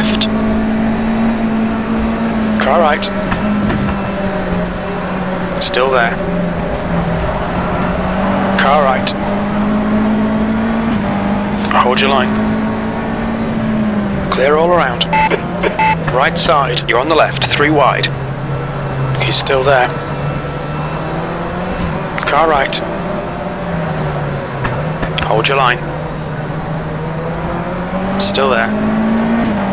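A racing car engine drones steadily at high revs.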